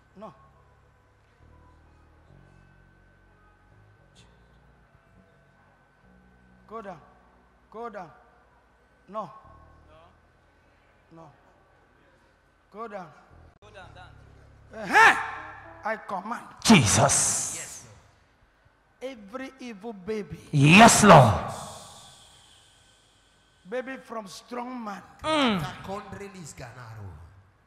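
A man speaks with animation and shouts through a microphone in a large echoing hall.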